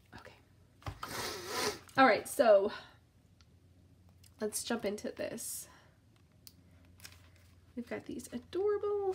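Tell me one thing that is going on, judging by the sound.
Paper rustles and crinkles as cards are handled.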